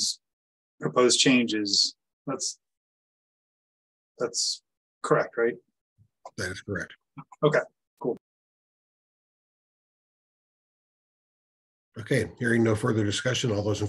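A middle-aged man speaks calmly through a microphone on an online call, with pauses.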